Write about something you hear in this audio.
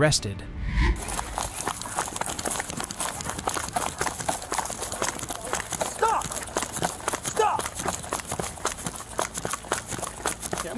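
Footsteps pound quickly on grass and pavement as someone runs close by.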